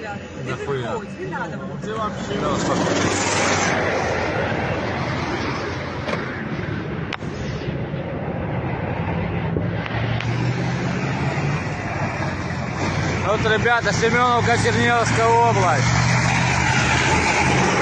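An armoured vehicle's engine roars loudly as it drives past close by.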